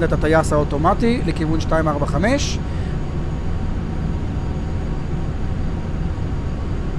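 Jet engines drone with a steady low hum.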